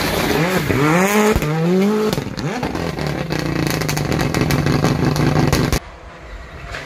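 Tyres skid and scrabble on the road surface.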